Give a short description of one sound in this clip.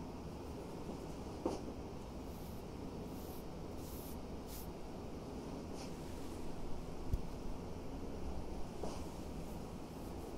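Makeup brushes rattle softly in a hand.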